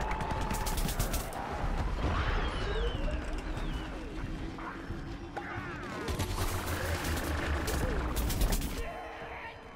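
Game explosions boom.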